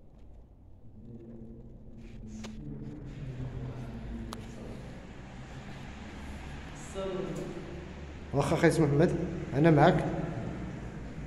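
Two elderly men talk calmly at a distance in an echoing room.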